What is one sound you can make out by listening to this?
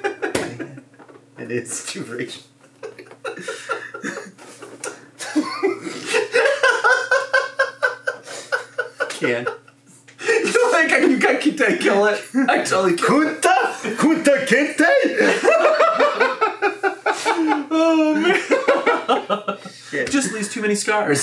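Two men laugh heartily, close to a microphone.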